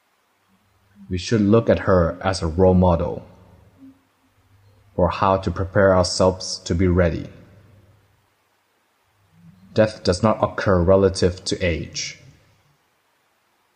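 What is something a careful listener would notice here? An elderly man speaks calmly through a microphone, with pauses between phrases.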